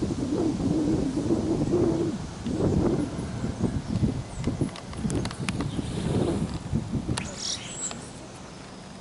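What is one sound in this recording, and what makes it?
Wind gusts blow outdoors.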